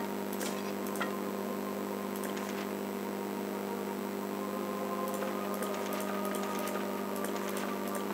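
Soft clicks sound now and then as items are picked up and put down.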